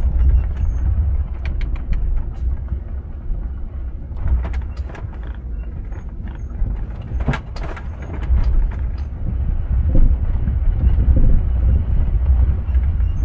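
Tyres crunch and rattle over a dirt road.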